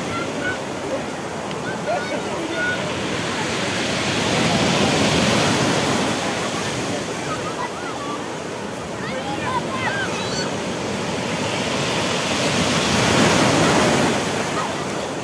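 Children and adults shout and squeal playfully in the surf.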